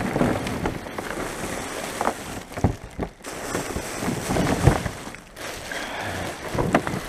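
A plastic bin lid rattles and thuds as it is handled.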